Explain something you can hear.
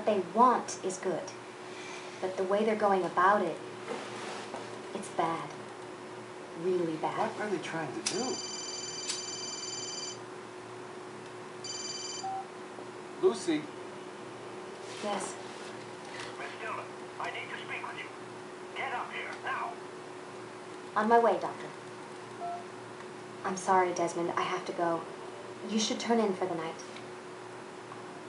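A young woman speaks calmly, heard through a television speaker in a room.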